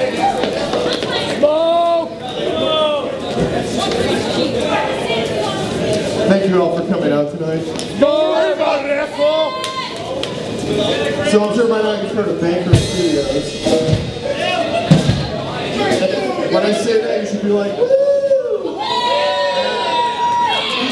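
A rock band plays loud electric guitars in a large, echoing room.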